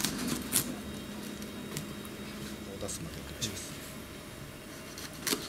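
A knife crunches through a small fish.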